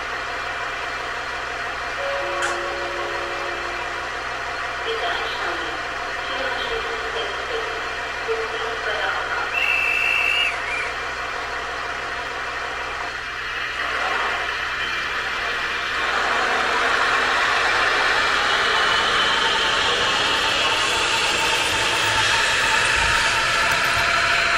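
A diesel locomotive engine drones.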